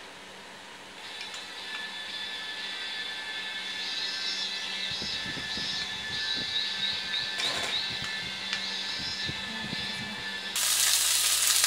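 A small electric fan whirs steadily.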